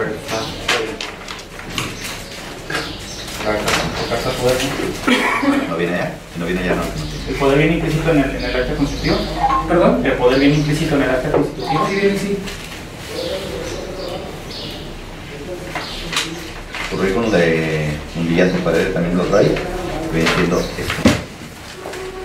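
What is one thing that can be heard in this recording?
A man speaks calmly to a small group.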